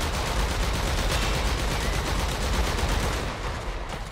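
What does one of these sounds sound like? A weapon fires in rapid bursts.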